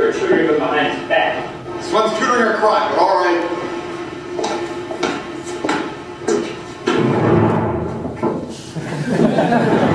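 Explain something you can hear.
A young man speaks with animation nearby.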